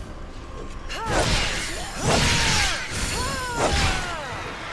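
A blade swishes and strikes during a fight.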